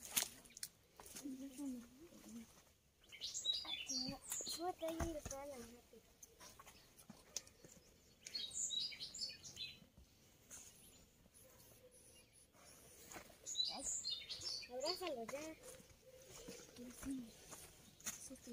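Children talk and call out nearby outdoors.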